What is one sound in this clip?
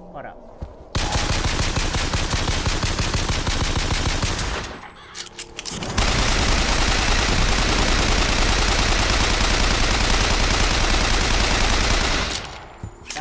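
A gun fires rapid bursts of shots up close.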